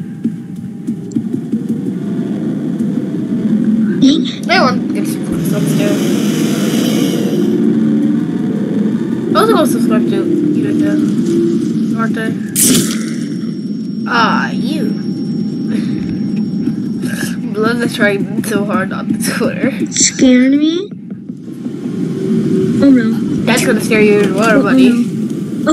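A boy talks and exclaims over an online call.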